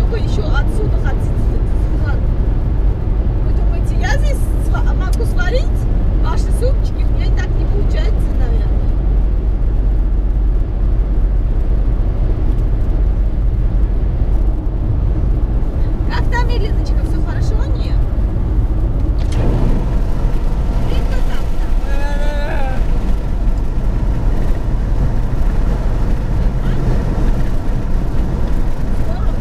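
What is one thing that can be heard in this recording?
A car drives steadily along a highway with a low road rumble.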